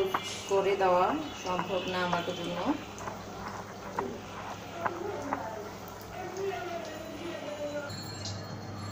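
Hot oil sizzles and bubbles steadily in a frying pan.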